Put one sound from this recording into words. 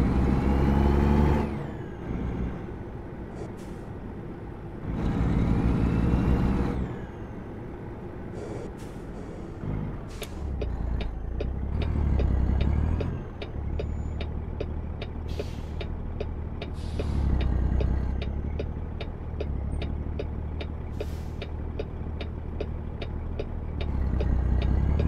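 A truck engine rumbles and revs up and down through gear changes.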